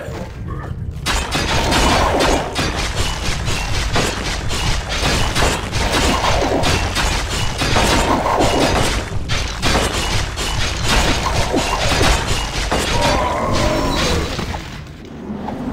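Game combat sounds clash and crackle with spell effects and blows.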